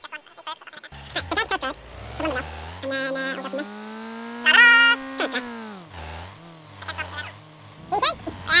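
A car engine revs and hums.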